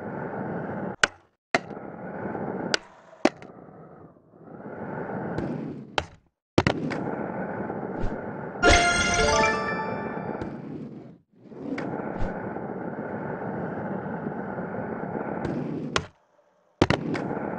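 A skateboard deck clacks sharply as it lands.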